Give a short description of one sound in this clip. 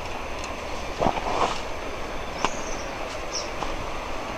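Leafy stems rustle and brush past as someone pushes through dense undergrowth.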